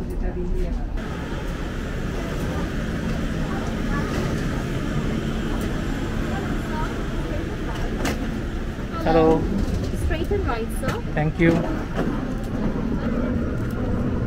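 A steady low roar of jet engines fills an aircraft cabin.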